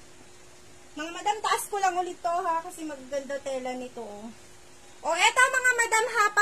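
A young woman talks loudly and with animation close by.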